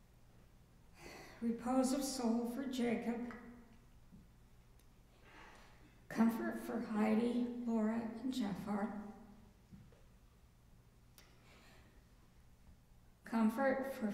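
An elderly woman reads out slowly and calmly through a microphone, with pauses between phrases.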